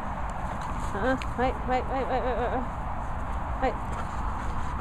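A dog whines in short, rising and falling yelps close by.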